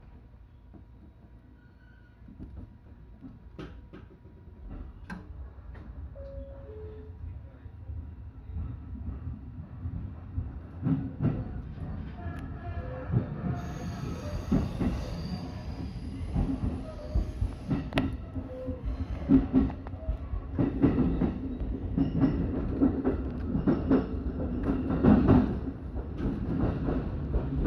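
A train rumbles along the tracks, picking up speed.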